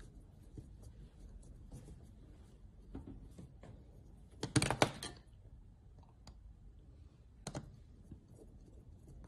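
A screwdriver scrapes and clicks against a small circuit board.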